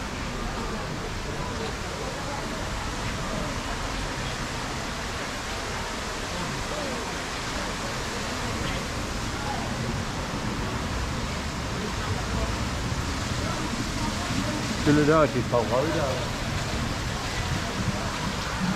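People chat in the background outdoors.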